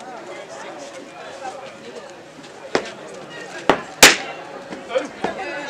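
A large crowd of men and women chatters outdoors.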